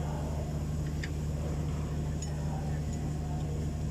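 A wrench clicks against metal a few times.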